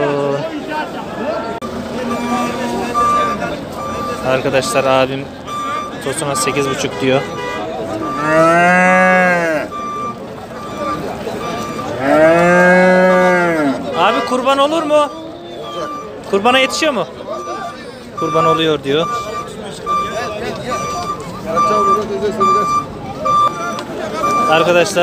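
Men talk in a crowd nearby, outdoors.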